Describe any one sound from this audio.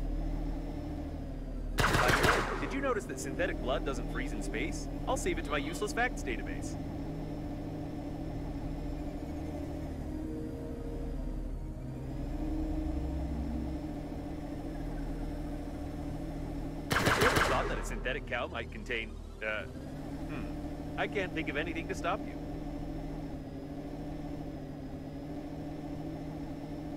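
A low engine hums steadily.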